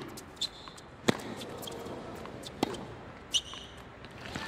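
A tennis ball is struck with a sharp pop.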